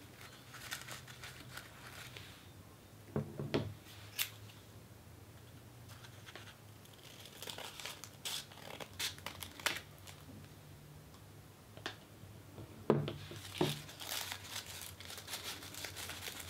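Crepe paper crinkles and rustles close up.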